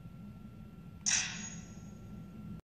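A handheld game console plays a short, bright chime that quickly fades.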